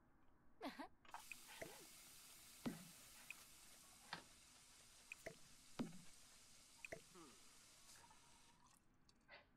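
Water runs from a tap into a sink.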